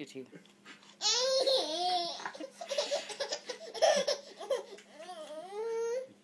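A baby giggles and squeals with delight close by.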